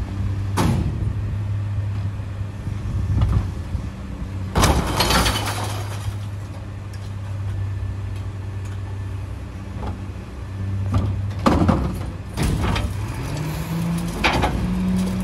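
A garbage truck engine idles with a low steady rumble.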